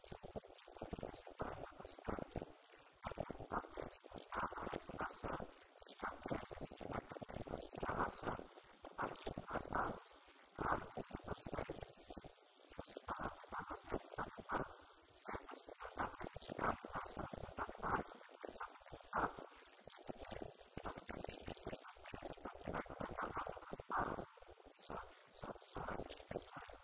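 A man speaks steadily into a microphone, heard through a loudspeaker in a large echoing room.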